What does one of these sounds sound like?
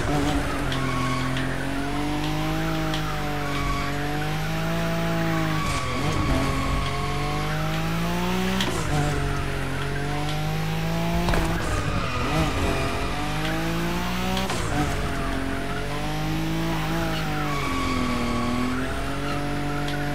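Tyres screech while a car drifts.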